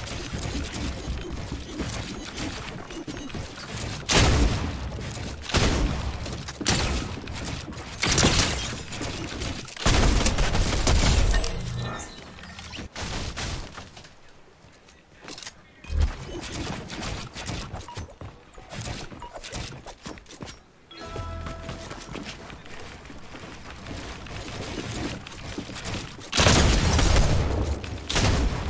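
Wooden building pieces snap and clatter rapidly in a video game.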